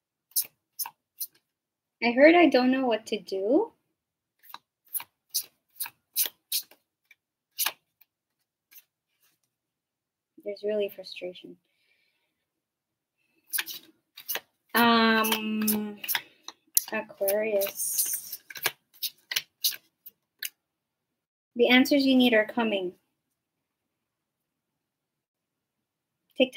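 Cards tap and click as a young woman handles and shuffles them.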